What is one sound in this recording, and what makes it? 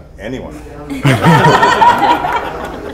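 A group of adults laugh and call out together.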